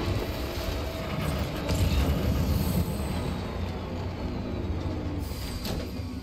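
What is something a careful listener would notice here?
A truck engine rumbles and labours over rough rocky ground.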